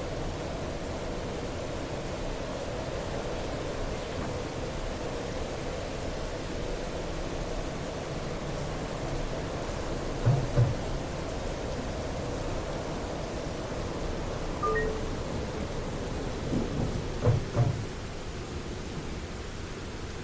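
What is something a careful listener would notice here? An electric tram rolls along rails with a steady rumble and hum.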